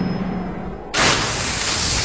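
A loud impact bursts with a crash.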